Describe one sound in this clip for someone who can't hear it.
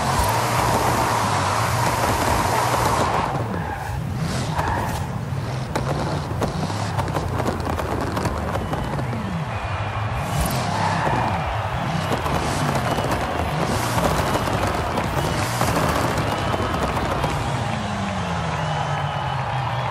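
A powerful car engine roars and revs up and down.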